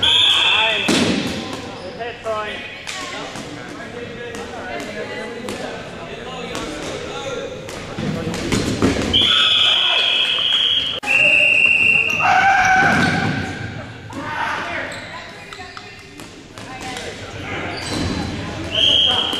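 Rubber balls thud and bounce on a wooden floor in a large echoing hall.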